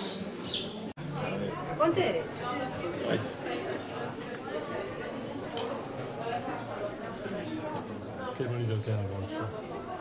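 Many people chatter in the distance, with an echo.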